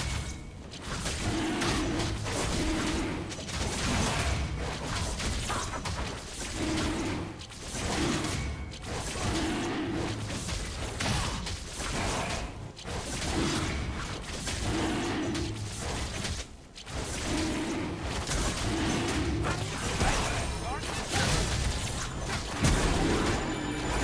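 Game sword strikes and magic blasts clash in a fight.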